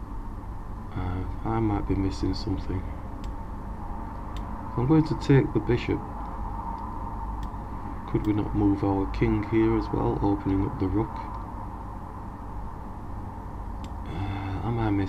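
A man talks calmly and closely into a microphone, in short bursts.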